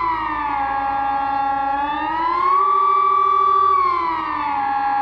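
A siren wails loudly nearby, its pitch slowly rising and falling.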